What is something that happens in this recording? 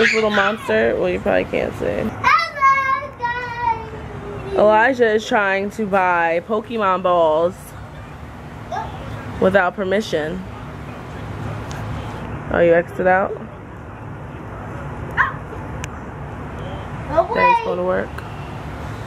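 A young child talks and chatters close by in a high voice.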